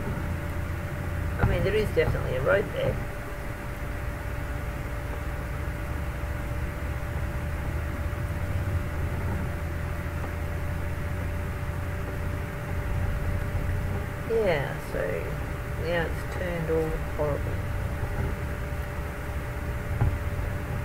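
A truck engine hums steadily as it drives.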